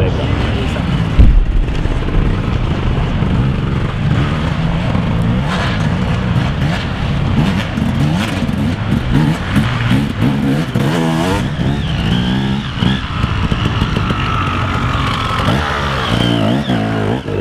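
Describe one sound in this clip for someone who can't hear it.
A dirt bike engine revs and roars as it climbs rough ground.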